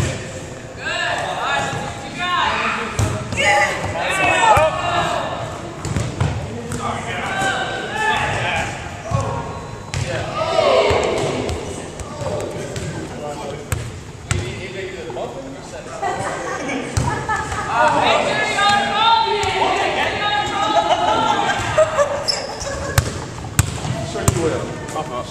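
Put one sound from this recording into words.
Adult women talk and call out nearby in a large echoing hall.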